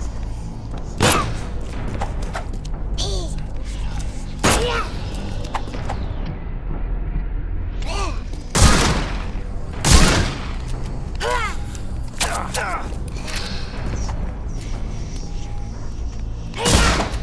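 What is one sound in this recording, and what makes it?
A revolver fires loud shots.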